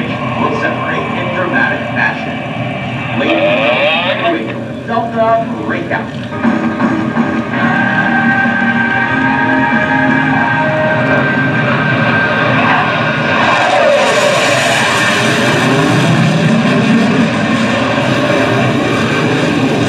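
A jet engine roars overhead, growing louder as the aircraft climbs closer.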